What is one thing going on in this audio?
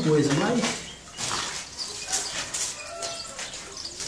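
A metal bucket scrapes through sand.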